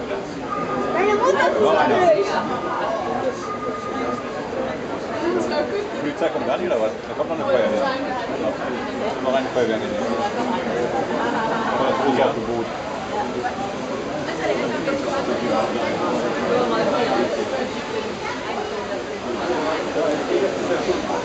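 A crowd of adults and children chatters nearby.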